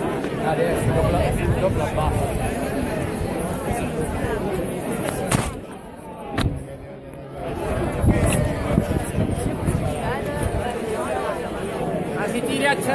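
A large crowd chatters and cheers loudly outdoors.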